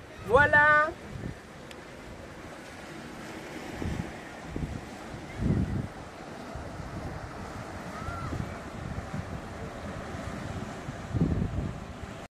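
Gentle waves lap on a sandy shore.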